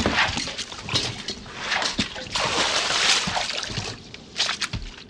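Wooden buckets knock and thud against each other.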